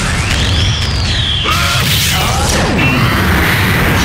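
A burst of magic energy whooshes.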